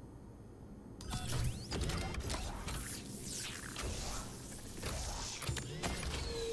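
Sparks hiss and crackle from a machine.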